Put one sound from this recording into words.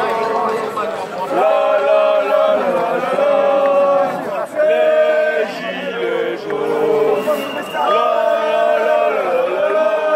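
A crowd of men and women sings and chants loudly in unison outdoors.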